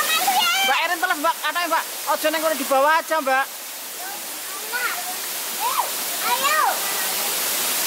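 A young child talks and squeals excitedly close by.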